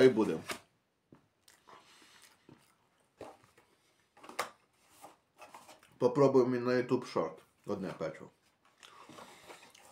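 A young man chews food with his mouth close to the microphone.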